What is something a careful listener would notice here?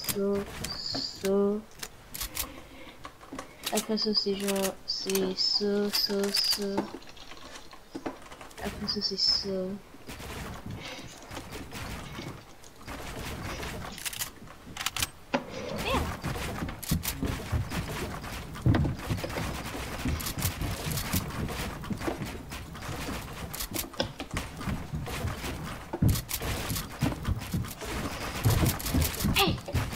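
Wooden panels snap into place with quick, repeated clacks.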